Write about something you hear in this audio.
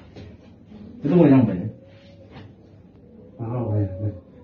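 A young man speaks loudly and with animation close by.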